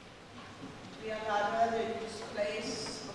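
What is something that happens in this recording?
A woman sings slowly in a large echoing hall.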